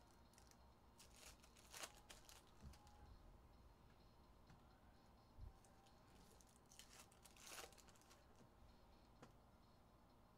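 A plastic wrapper crinkles and rustles in someone's hands.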